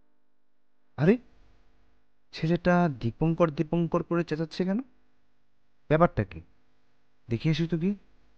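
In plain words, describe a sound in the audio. A man speaks in a low, serious voice close by, in short bursts with pauses.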